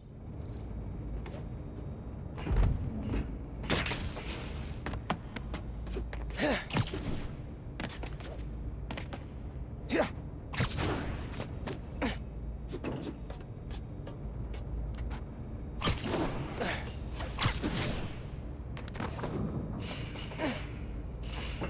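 Footsteps and thumps land on metal.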